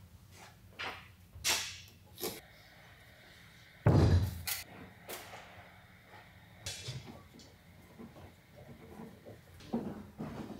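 Wooden boards knock and clatter against each other.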